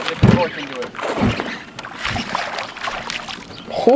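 Water splashes as a fish thrashes at the surface.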